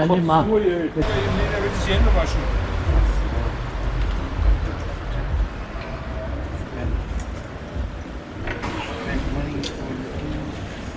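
Several men talk quietly a short distance away.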